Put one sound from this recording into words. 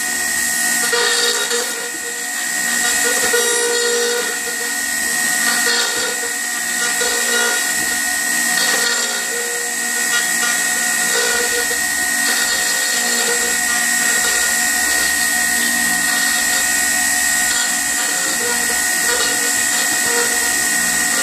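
A motor whines loudly and steadily as router bits carve wood.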